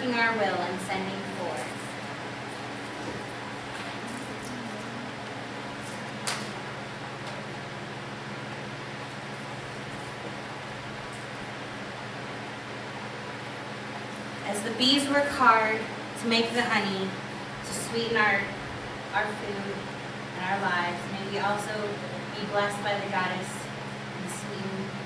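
A woman reads aloud into a microphone in an echoing hall.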